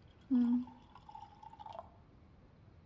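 Wine pours into a glass.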